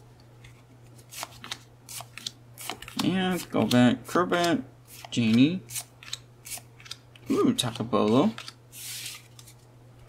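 Trading cards flick and slide against each other in a hand.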